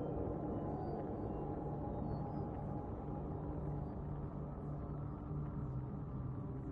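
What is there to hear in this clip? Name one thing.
A spacecraft engine hums with a deep, steady drone.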